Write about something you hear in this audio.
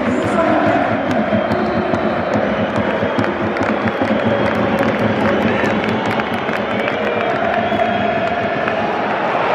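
Fans clap in rhythm.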